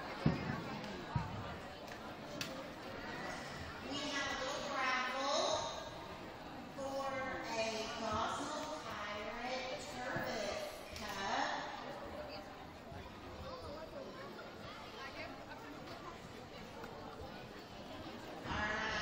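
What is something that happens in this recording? A crowd of children and adults chatters and calls out in a large echoing hall.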